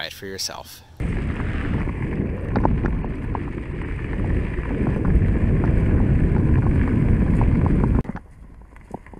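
Wind rushes loudly past a moving bike.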